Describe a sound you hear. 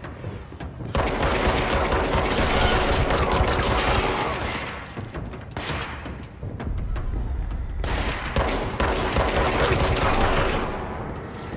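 A pistol fires rapid shots with heavy booming blasts.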